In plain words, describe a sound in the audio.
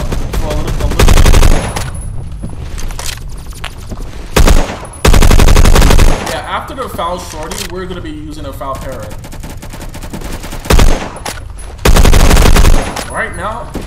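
Rapid gunfire bursts loudly from a game.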